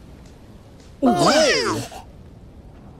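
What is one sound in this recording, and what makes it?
A group of cartoonish voices cheer excitedly.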